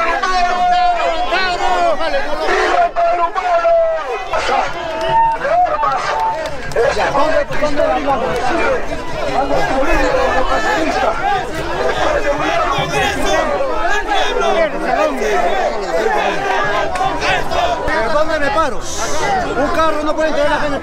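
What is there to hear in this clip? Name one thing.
A crowd of men and women shouts and chatters loudly close by, outdoors.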